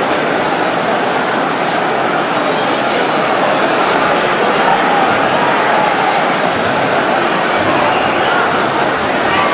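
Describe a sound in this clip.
A large crowd chatters and cheers loudly all around.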